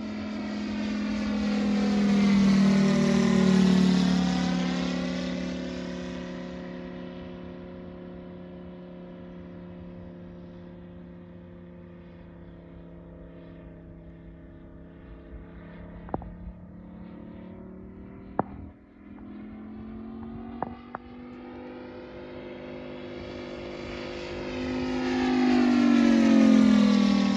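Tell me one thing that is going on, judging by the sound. A propeller plane's engine drones overhead, roaring loud as it passes close, fading into the distance, and swelling again as it returns.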